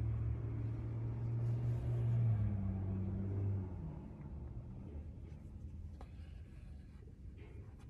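A metal button clicks softly as it is fastened.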